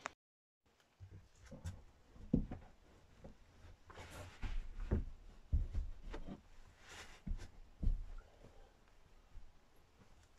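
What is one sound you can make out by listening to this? Bedding and cushions rustle and thud softly as they are moved about.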